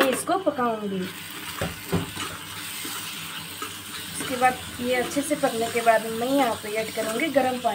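Food sizzles gently in a hot pan.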